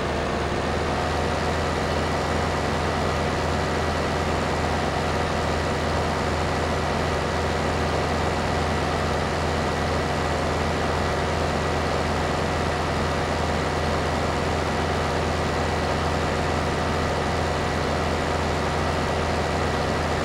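A heavy diesel engine rumbles steadily as a tracked forestry machine drives along.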